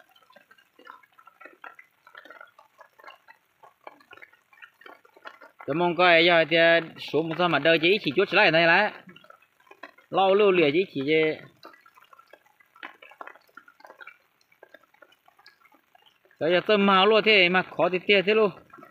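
A fishing net rustles and drips as it is pulled from the water.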